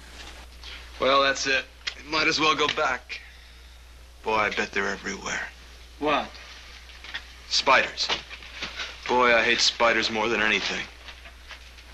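A young man speaks in a low, tense voice close by.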